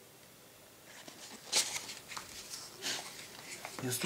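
A sheet of paper rustles as it is handled and laid down.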